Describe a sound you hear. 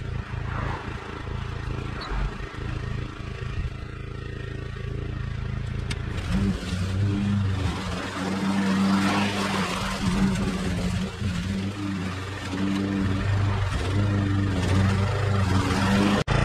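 A petrol lawn mower engine drones steadily nearby, growing louder as it cuts grass.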